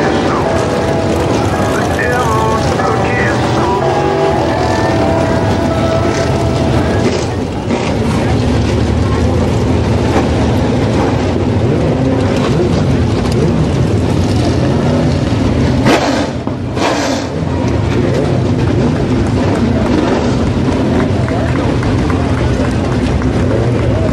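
Race car engines roar and rumble steadily nearby.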